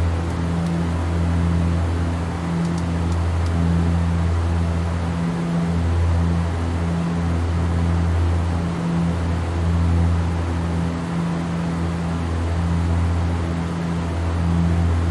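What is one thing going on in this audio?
Aircraft engines drone steadily in a low hum.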